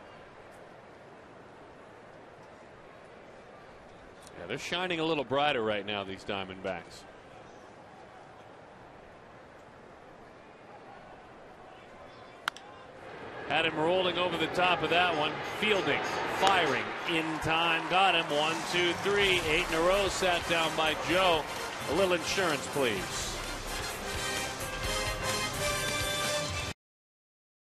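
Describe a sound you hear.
A crowd murmurs in a large stadium.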